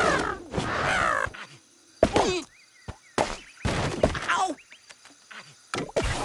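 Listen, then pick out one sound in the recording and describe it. Wooden blocks crack and clatter as a structure collapses.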